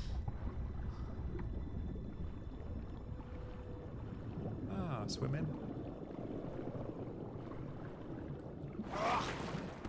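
Water bubbles and churns underwater.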